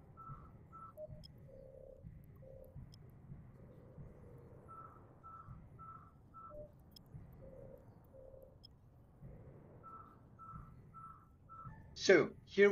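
Soft electronic beeps blip again and again.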